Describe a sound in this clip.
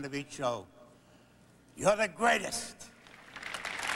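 An elderly man speaks warmly and clearly.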